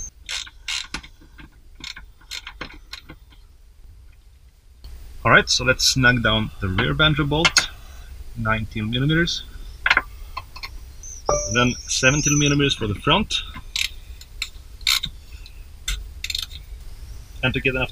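A metal wrench clinks and scrapes against a fitting.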